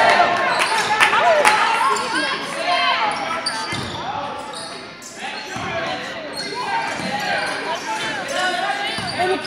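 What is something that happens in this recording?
Basketball shoes squeak sharply on a gym floor.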